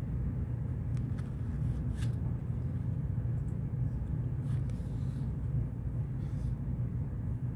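Paper pages rustle softly as a book is turned.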